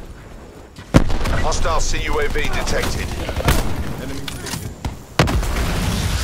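A rifle fires single sharp shots.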